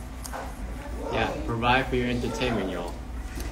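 A second young man speaks nearby.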